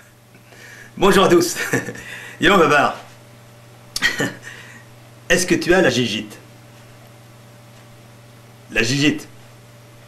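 A middle-aged man speaks close up in short, animated bursts.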